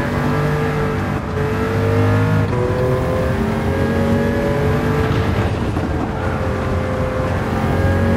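A race car engine roars at high revs, rising in pitch and dropping briefly as the gears shift.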